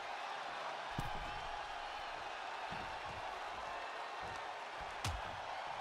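Bodies thud onto a ring mat.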